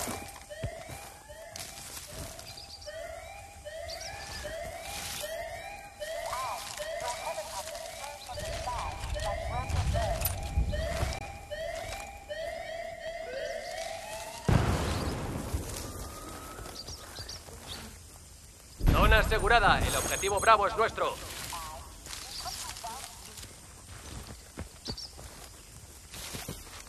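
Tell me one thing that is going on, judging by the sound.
Leaves and grass rustle as someone pushes through dense undergrowth.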